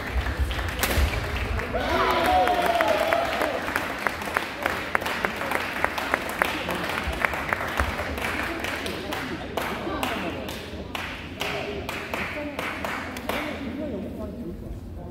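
Rackets hit a shuttlecock again and again in a large echoing hall.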